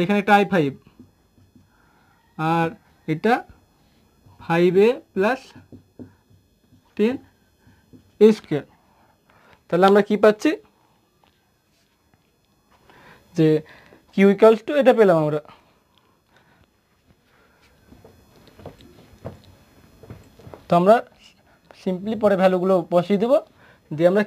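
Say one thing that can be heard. A young man speaks in short bursts, explaining calmly and close by.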